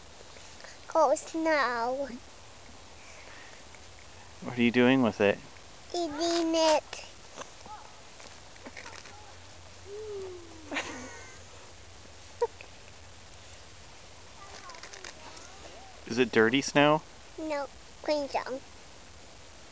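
A young girl talks and babbles close by.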